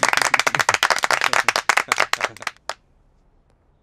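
A group of men clap their hands.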